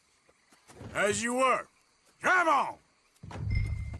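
A man speaks loudly and firmly.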